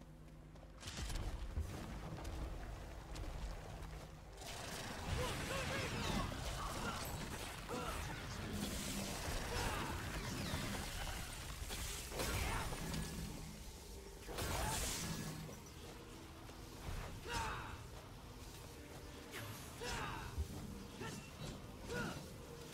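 Metal blades slash and clang in a fast fight with loud impacts.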